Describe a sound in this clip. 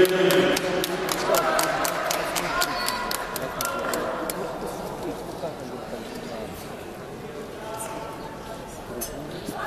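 Boxing gloves thump against each other in a large echoing hall.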